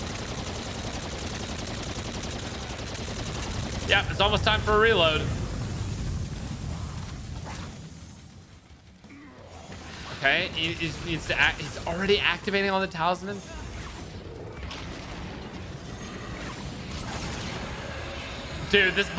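Gunfire and explosions from a game roar and rumble.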